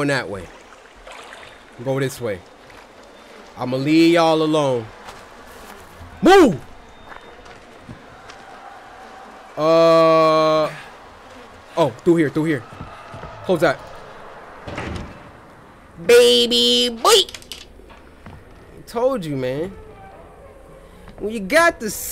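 A young man talks and exclaims with animation into a close microphone, with drawn-out, sing-song cries.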